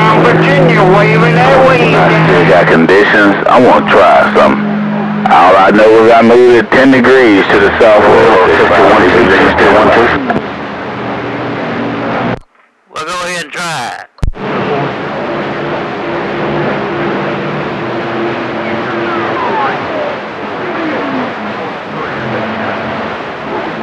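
A radio receiver hisses with static through its loudspeaker.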